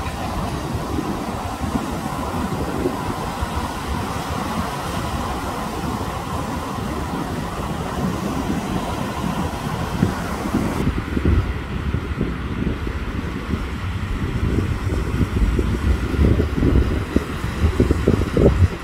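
Waves wash and roll onto a beach.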